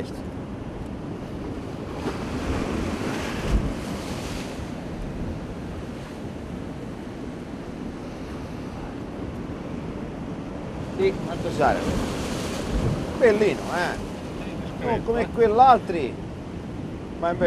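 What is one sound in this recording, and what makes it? Waves wash against rocks.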